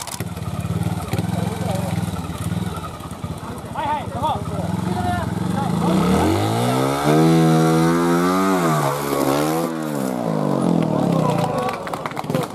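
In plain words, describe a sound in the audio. A motorcycle engine idles and then revs up loudly, rising and falling in pitch.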